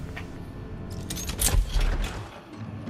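A locked metal door rattles as its handle is tried.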